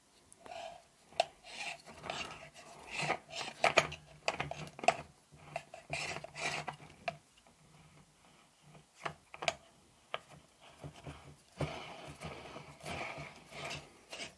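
Plastic parts click and knock together as they are handled.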